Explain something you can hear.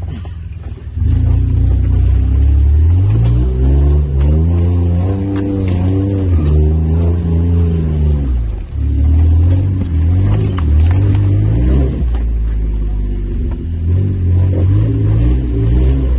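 An engine revs hard and rises and falls in pitch.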